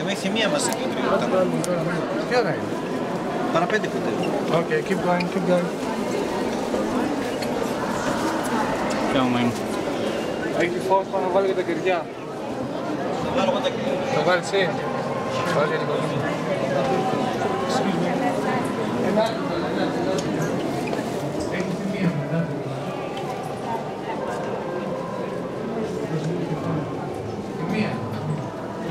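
A crowd of men and women murmurs and talks close by.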